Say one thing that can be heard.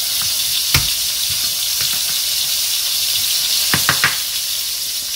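A knife knocks sharply on a wooden cutting board.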